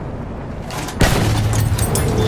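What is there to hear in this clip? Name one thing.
A large explosion bursts with a sudden loud blast.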